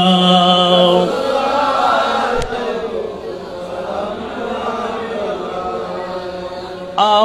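A man chants loudly through a microphone and loudspeakers, in a hall that echoes.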